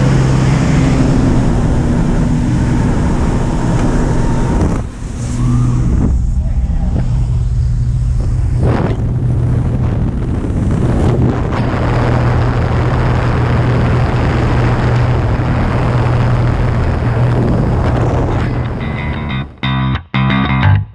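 Wind roars hard past an open door.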